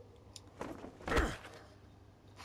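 A man's feet land with a heavy thud.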